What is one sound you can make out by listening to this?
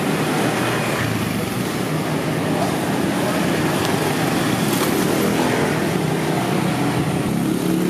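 A motorbike engine revs up close and pulls away.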